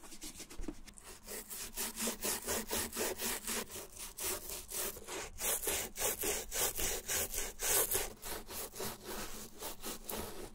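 A brush scrubs quickly back and forth against a shoe's sole.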